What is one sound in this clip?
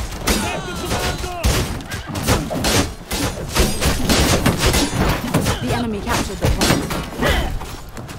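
Swords clash and clang in a melee.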